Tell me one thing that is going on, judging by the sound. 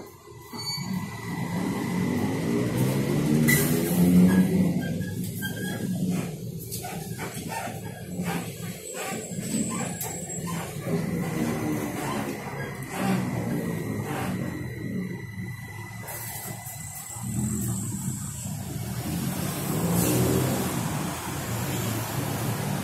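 A bus motor hums and whines, rising and falling in pitch as the bus pulls away and slows.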